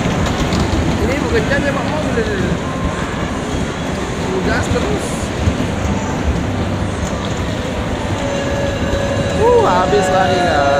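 Children shout and squeal in a large echoing hall.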